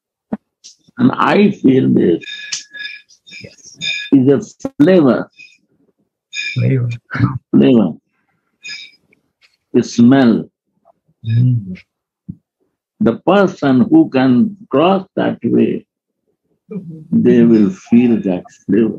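An elderly man speaks with animation through an online call.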